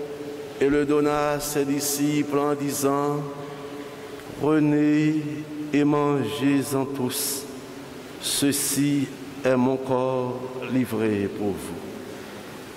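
A man chants into a microphone in a large echoing room.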